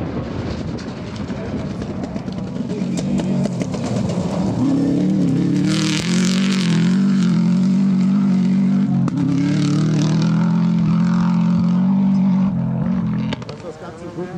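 A rally car engine roars loudly as it speeds past.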